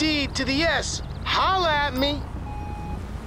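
A man talks over a phone with animation.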